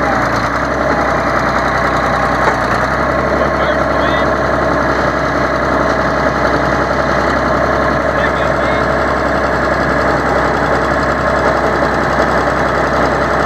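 A diesel crawler dozer's engine runs up close.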